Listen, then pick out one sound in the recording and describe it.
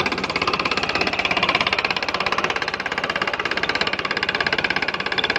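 A tractor engine runs.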